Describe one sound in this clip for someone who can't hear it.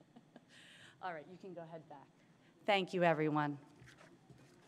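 A woman speaks briefly through a microphone.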